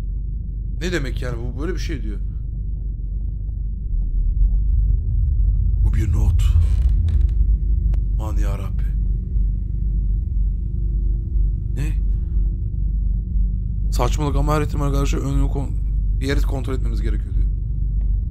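A man talks close to a microphone with animation.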